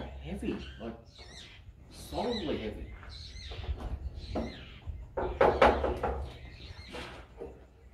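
A wooden door creaks as it swings open.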